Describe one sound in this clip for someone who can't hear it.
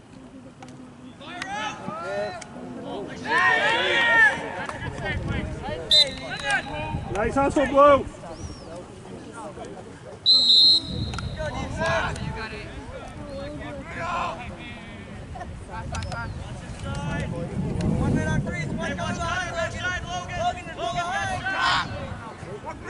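Young men shout across an open field.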